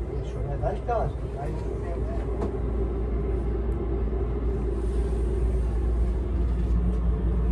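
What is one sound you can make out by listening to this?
A train carriage hums with a steady low drone.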